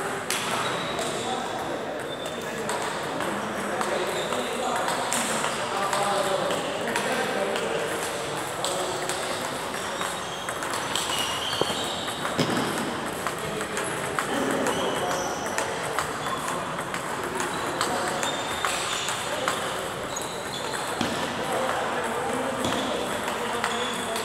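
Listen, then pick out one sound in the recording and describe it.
Ping-pong balls click against paddles and tables in a large echoing hall.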